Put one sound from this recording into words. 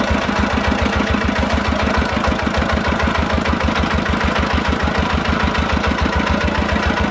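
A single-cylinder engine chugs loudly and rapidly close by.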